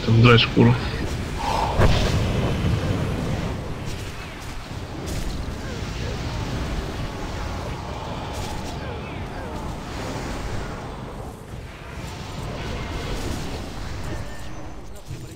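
Spell effects crackle and boom in a busy fight.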